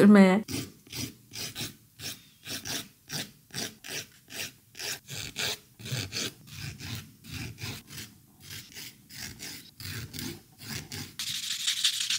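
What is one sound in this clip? A nail file rasps in quick, even strokes.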